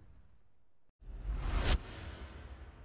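A sharp whoosh sweeps past.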